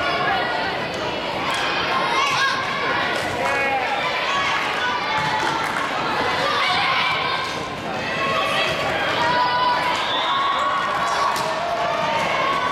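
A crowd of spectators chatters and cheers loudly in a large echoing gym.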